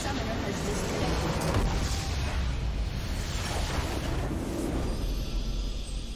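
A large structure explodes with a deep rumbling boom.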